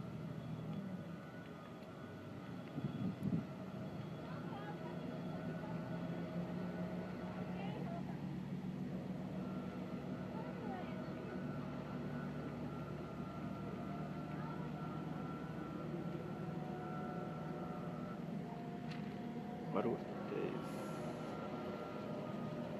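A gate motor hums steadily.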